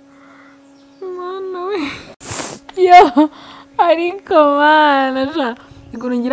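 A young woman laughs loudly and brightly.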